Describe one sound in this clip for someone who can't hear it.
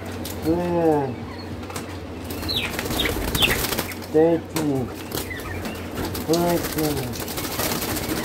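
A wire cage rattles as a hand reaches in.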